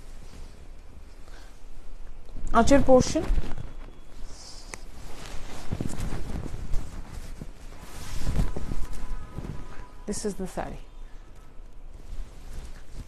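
Silk fabric rustles and swishes as it is handled.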